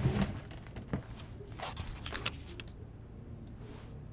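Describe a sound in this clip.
A spiral notebook is flipped open with a papery rustle.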